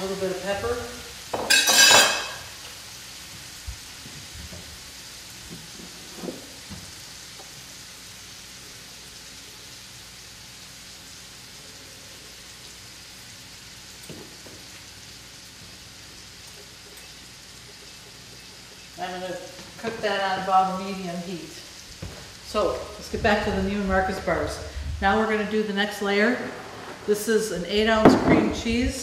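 A middle-aged woman talks calmly close by.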